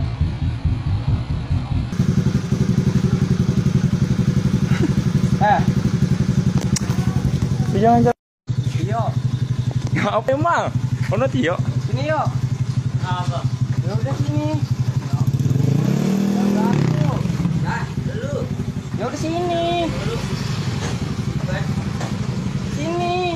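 A motorcycle engine idles nearby with a steady throb.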